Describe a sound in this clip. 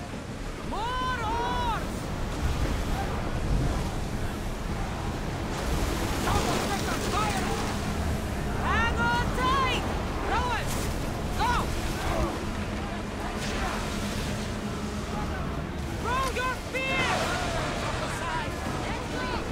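Men on a ship shout and chant loudly together.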